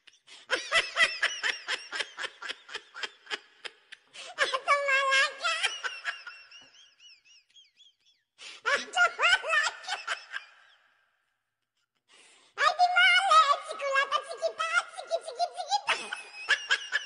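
A young girl laughs loudly close by.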